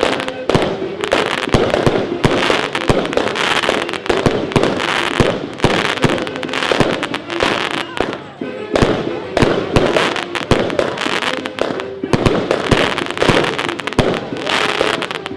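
Fireworks burst with loud, rapid bangs.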